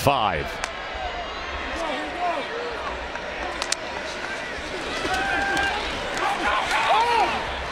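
Football players shout across an open field.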